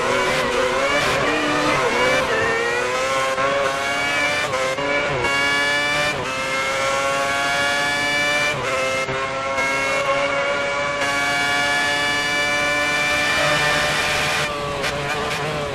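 A racing car engine screams at high revs, rising in pitch through each gear and dropping briefly at every shift.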